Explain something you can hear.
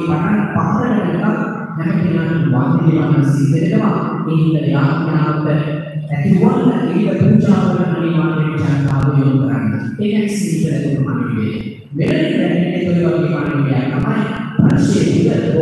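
A man speaks steadily over a loudspeaker, echoing in a large hall.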